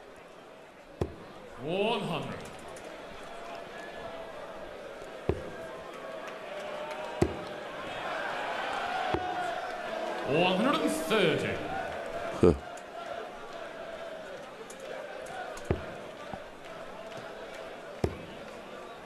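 Darts thud sharply into a board.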